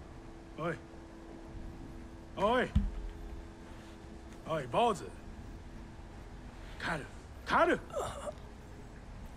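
A man with a gruff voice shouts in short bursts.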